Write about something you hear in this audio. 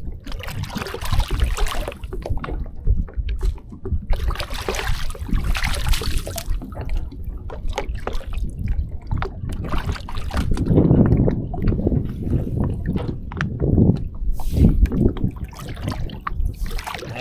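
Water drips and splashes as a fishing net is hauled up from a river.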